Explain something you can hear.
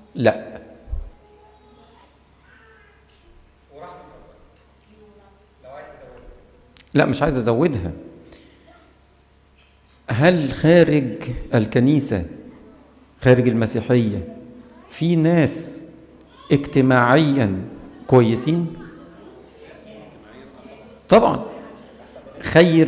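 A man chants through a microphone in a large echoing hall, in short phrases with pauses.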